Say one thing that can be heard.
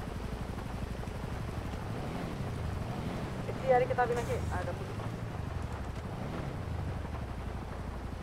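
A car engine rumbles low and revs.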